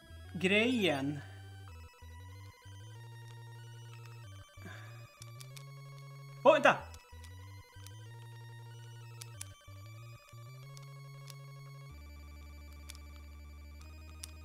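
Bouncy chiptune game music plays steadily.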